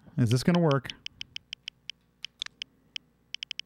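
Short electronic menu beeps tick in a quick series.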